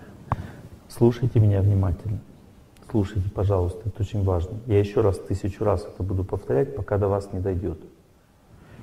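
A middle-aged man speaks calmly into a microphone, heard through a loudspeaker in a large hall.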